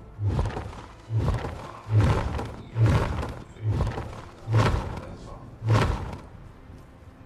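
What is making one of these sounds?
A game character's footsteps thud rhythmically on the ground.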